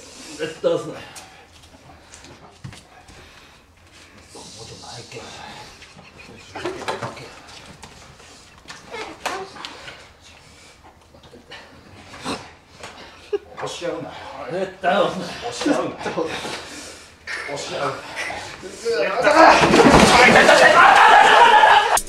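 Young men talk and laugh nearby.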